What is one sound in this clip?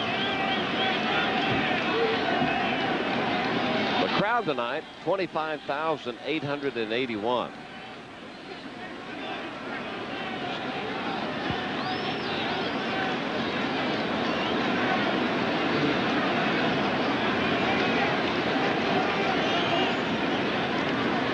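A large crowd murmurs and cheers in a big open stadium.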